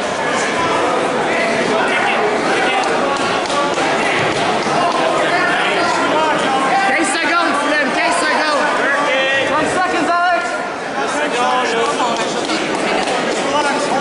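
A middle-aged man shouts instructions loudly nearby.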